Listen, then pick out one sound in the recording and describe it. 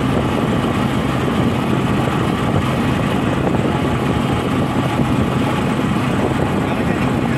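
Tyres roll on a rough road.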